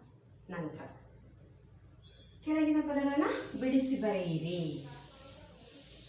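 A woman speaks clearly in a slow, teaching tone nearby.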